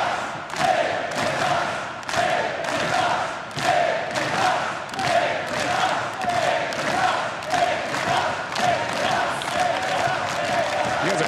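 A large crowd claps in a steady rhythm in a big echoing hall.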